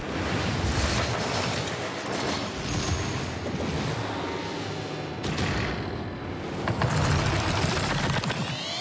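Car engines roar and whine.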